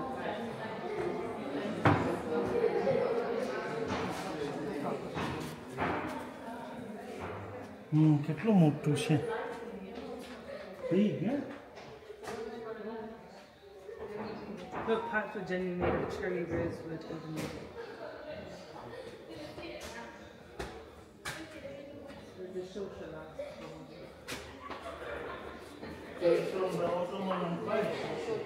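Adult men and women talk quietly nearby in an echoing room.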